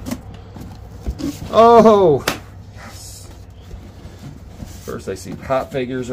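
Packed items rustle and clack as they are shifted in a box.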